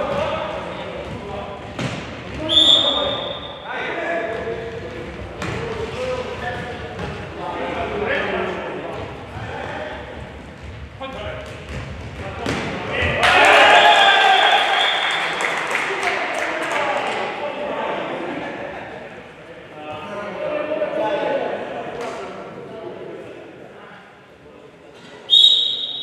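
Players shout to each other across an echoing indoor hall.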